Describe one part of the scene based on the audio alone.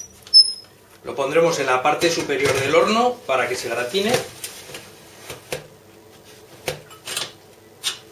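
A metal baking tray scrapes and clanks as it slides into an oven.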